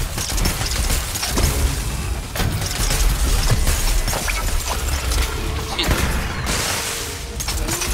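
Weapon strikes clang against a creature.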